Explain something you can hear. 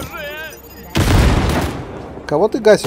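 Gunfire and explosions burst loudly.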